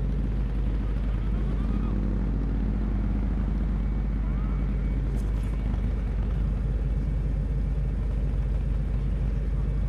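A motorcycle engine rumbles steadily as it rides along.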